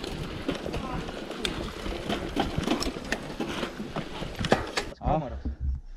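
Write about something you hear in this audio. A bike's frame and chain clatter over bumps.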